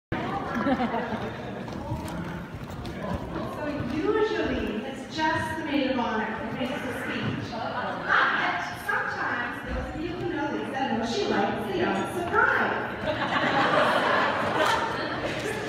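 A woman speaks into a microphone, heard over loudspeakers in a large echoing hall.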